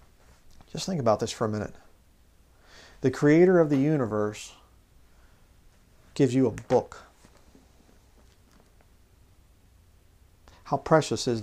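A man speaks calmly and expressively into a close microphone, with pauses.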